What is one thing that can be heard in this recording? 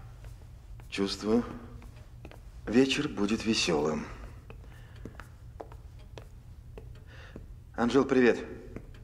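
A man talks nearby in short, calm phrases.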